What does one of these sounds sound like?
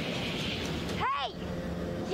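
A young woman shouts loudly outdoors.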